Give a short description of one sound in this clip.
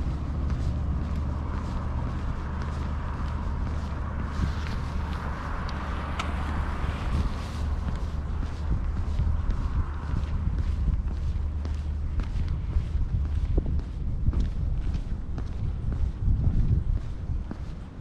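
Wind rumbles steadily across an open outdoor space.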